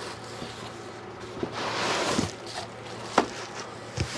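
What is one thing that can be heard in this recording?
Plastic wrapping crinkles as an item is lifted out.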